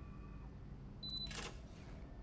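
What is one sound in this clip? A card reader beeps briefly.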